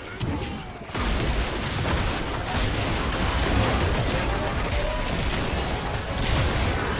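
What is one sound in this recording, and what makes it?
Magic spells crackle and boom in a fast fight.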